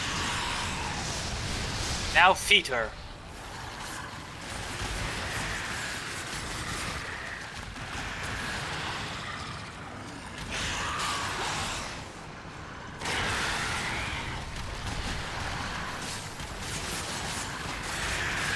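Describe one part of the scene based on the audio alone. A sword swooshes and clangs in repeated strikes.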